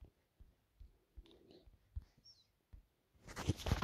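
Soft keyboard taps click in quick succession.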